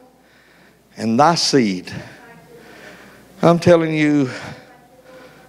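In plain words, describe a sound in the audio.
A man speaks loudly into a microphone in an echoing hall.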